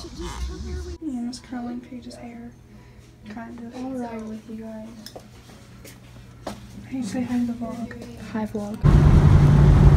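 Young girls chat and talk nearby.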